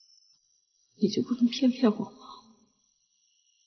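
A young woman speaks in a tearful, pleading voice close by.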